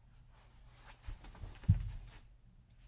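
Footsteps thump on the floor nearby.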